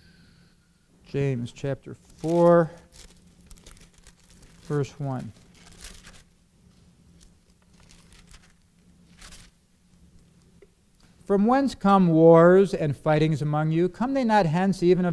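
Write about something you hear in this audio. A man speaks slowly and deliberately into a microphone, with long pauses.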